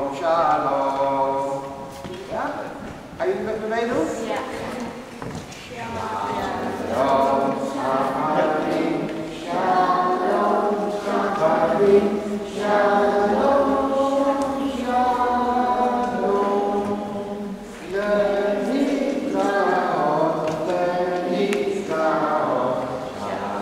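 Children sing along together.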